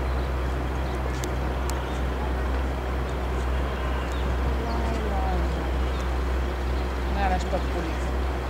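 A large crowd of young people chatters and calls out outdoors.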